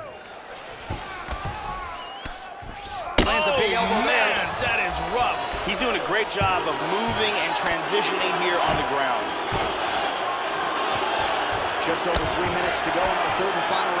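Punches thud heavily against a body.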